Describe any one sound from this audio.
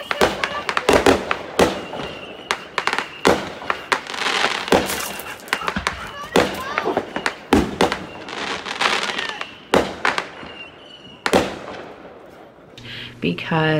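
Fireworks pop and crackle outdoors.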